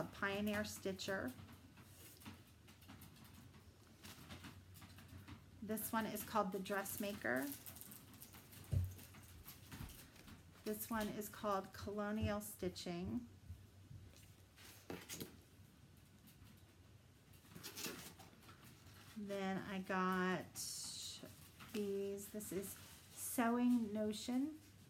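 A middle-aged woman talks calmly and closely, in short bursts with pauses.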